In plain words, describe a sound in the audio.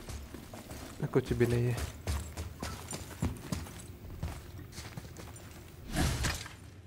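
Heavy footsteps run across stone.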